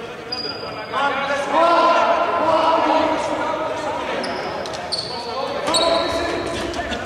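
Young men shout and call out to each other across a court.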